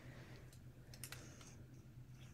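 Beads clack softly against each other.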